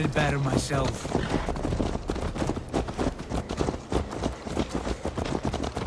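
Horses' hooves clop steadily on a dirt path.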